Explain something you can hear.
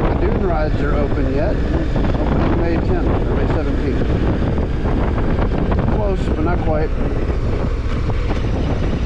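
Wind rushes loudly past the rider, then dies down.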